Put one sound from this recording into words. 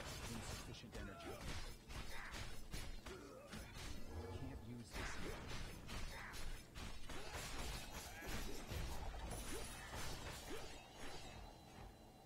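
Blows and spell effects clash and crackle in a game fight.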